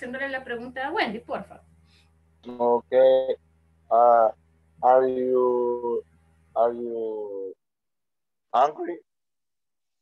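A woman speaks slowly and clearly over an online call, pausing between words.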